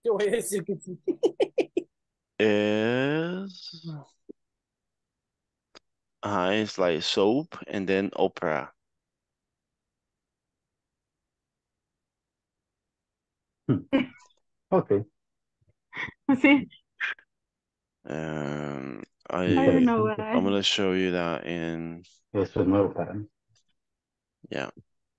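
A young man speaks calmly over an online call, in bursts with pauses.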